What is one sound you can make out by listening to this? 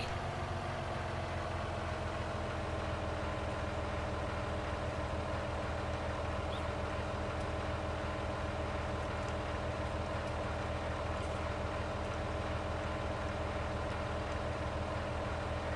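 A heavy diesel engine hums steadily nearby.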